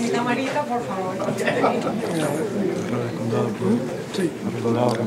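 Several adults chatter at once nearby.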